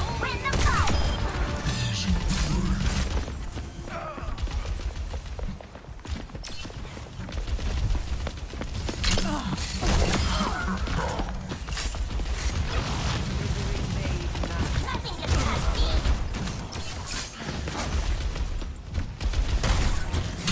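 Grenades burst with heavy booming explosions, again and again.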